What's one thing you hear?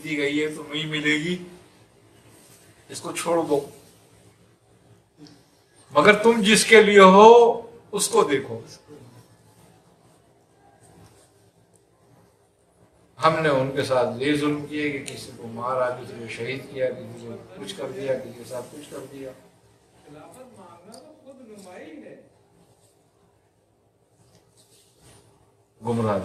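An elderly man speaks calmly and with animation, close by, in short bursts with pauses.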